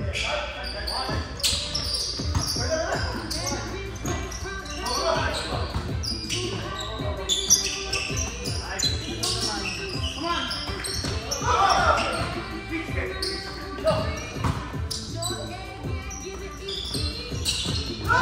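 Young men and women call out to each other during play, echoing in a large hall.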